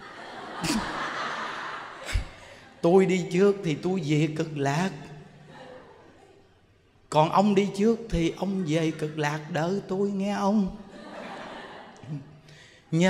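A crowd of people laughs together.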